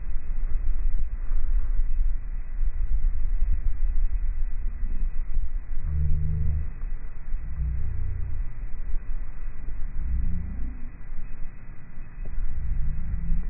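Wind rumbles and buffets across the microphone outdoors.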